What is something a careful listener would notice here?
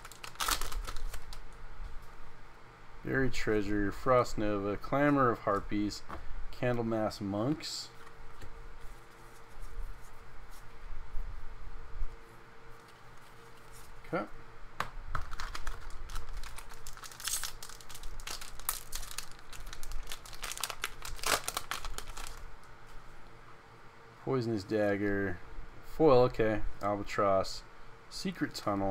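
Playing cards rustle and slap together as they are shuffled by hand.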